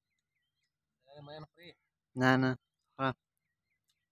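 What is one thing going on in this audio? A man speaks loudly and briefly, close by.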